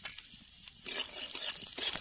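A metal spatula scrapes around a pan.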